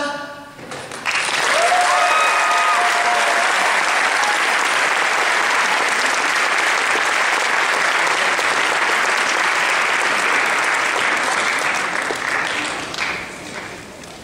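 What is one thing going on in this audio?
An audience applauds and cheers loudly, then the applause fades.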